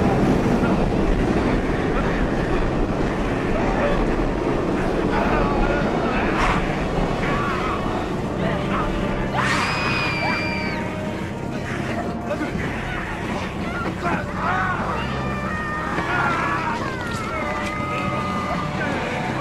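A man groans and grunts in pain as he struggles.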